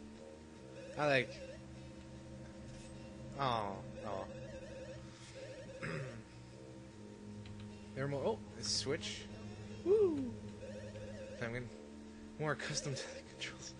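Short springy game sound effects boing and chirp now and then.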